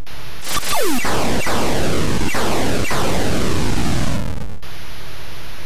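An electronic explosion bursts into rough crackling noise.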